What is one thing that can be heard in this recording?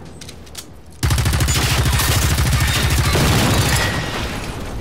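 A machine gun fires a long rapid burst at close range.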